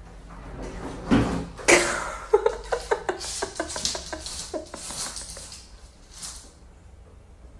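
A wooden drawer rattles and knocks as it is pulled open.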